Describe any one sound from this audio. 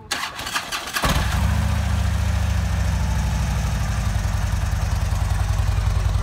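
A motorcycle engine starts up and idles with a deep, steady throbbing rumble.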